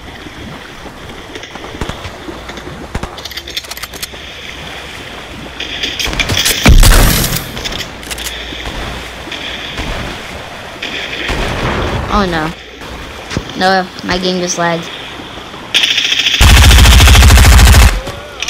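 Water splashes steadily as a swimmer moves through it.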